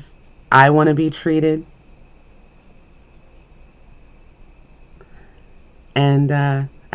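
A woman speaks close to a microphone in an animated, sing-song voice.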